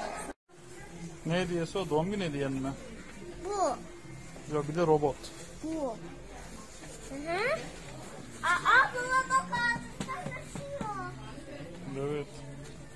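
A young boy talks with animation close by.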